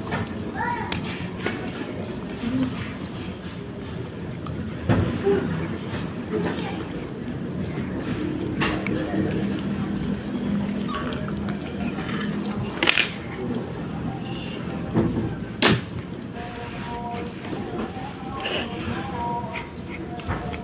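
Two kittens chew and tear at a fish with wet smacking sounds.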